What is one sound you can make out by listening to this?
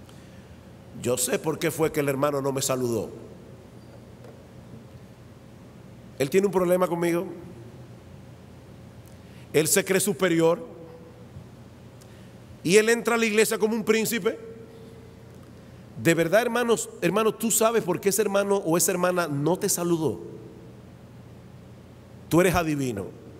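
A middle-aged man speaks with animation into a microphone, in bursts with pauses.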